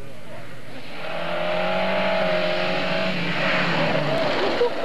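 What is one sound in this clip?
A second car engine roars as the car approaches and races past close by.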